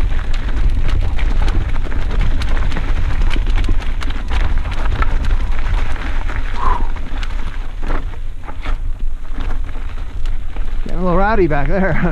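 A mountain bike's frame and chain rattle over bumps.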